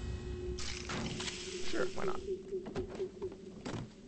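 Small metal items clink as they are picked up one after another.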